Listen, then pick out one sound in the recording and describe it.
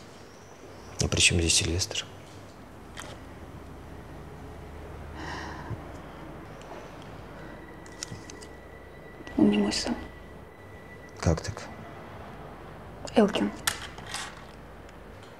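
A woman speaks softly and wearily nearby.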